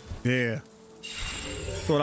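A magical orb crackles and bursts with a whooshing flash.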